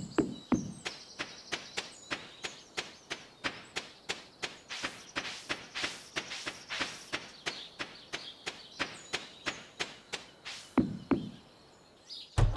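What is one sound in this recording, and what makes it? Footsteps patter quickly on dirt.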